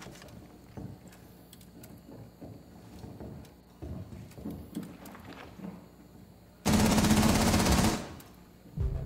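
Gas hisses loudly in bursts.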